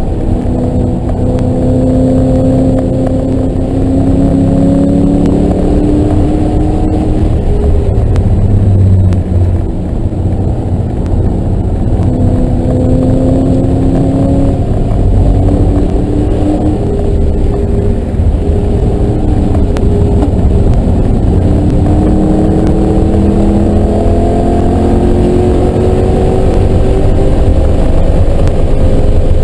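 A car engine roars loudly from close by, revving up and down.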